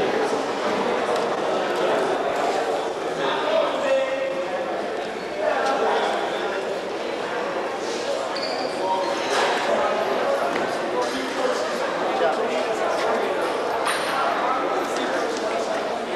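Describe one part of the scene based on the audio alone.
A crowd of men and boys chatters in a large echoing hall.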